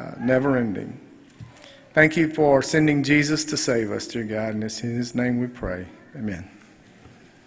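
A man speaks into a microphone in a large echoing room.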